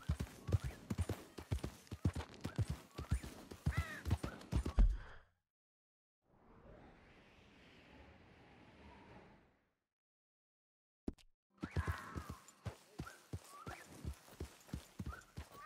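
Horse hooves thud steadily on dirt and grass.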